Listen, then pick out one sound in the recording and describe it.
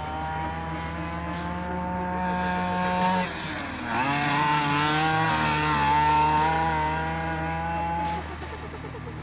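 A small electric motor whines at high pitch, rising and falling.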